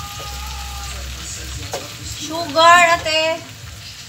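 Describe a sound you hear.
A wooden spatula clatters against shrimp in a metal pot.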